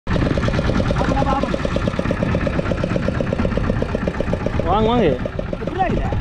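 A boat engine chugs loudly and steadily.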